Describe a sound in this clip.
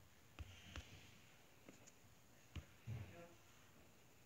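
Short game menu clicks sound.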